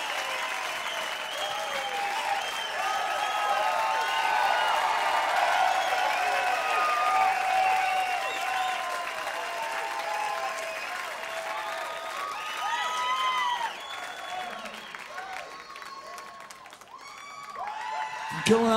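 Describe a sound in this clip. A large crowd cheers and whistles in a big echoing hall, then fades.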